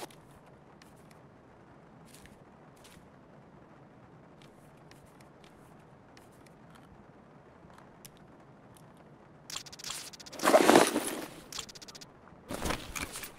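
Soft clicks and clatters sound as items are picked up and dropped.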